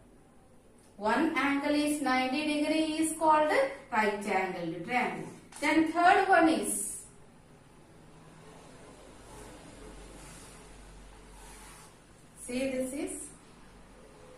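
A woman speaks calmly and clearly nearby.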